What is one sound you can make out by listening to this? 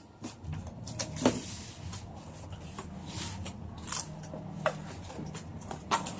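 A cardboard box is set down on a plastic table with a dull knock.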